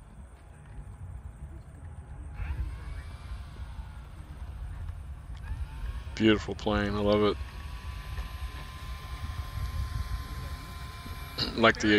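A small electric model plane motor whirs faintly as the plane taxis.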